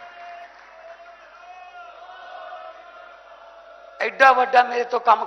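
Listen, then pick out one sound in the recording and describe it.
A man speaks forcefully through a microphone to a crowd, his voice loud and echoing.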